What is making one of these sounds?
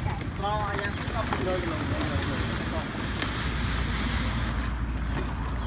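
Grain pours from a sack into a plastic bucket with a steady rustle.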